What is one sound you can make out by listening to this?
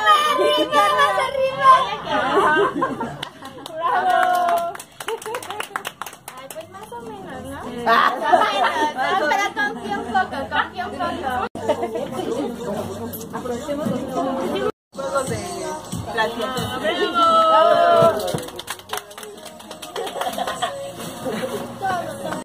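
A group of women and men talk and call out with animation nearby.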